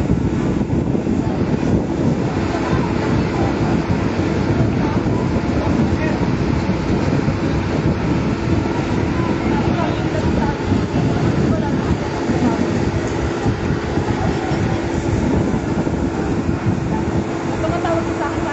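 A crowd of people shouts and calls out in the street below.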